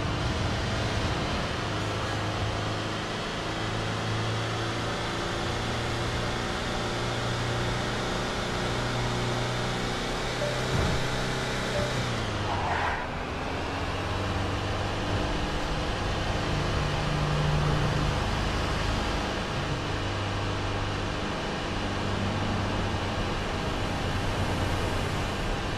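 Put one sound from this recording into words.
Tyres roll on a road with a steady rushing noise.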